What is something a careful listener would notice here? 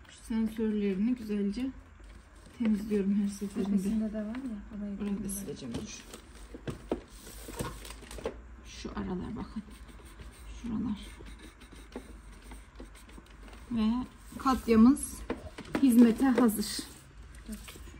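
A cloth rubs and wipes against a hard plastic surface.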